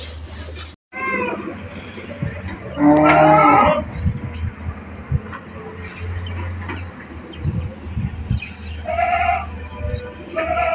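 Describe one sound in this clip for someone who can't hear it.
A goat bleats loudly nearby.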